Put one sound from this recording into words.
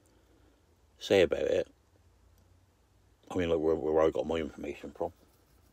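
An elderly man speaks close to the microphone in short bursts.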